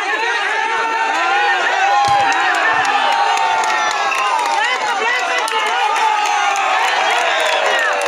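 A crowd of children and young people shout and cheer loudly outdoors.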